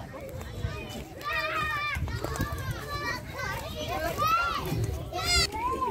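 Children shout and squeal at play nearby.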